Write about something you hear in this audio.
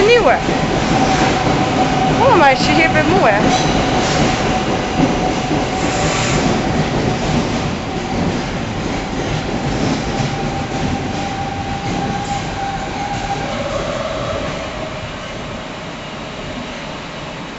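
A train rolls past along the tracks with a loud rumble that slowly fades.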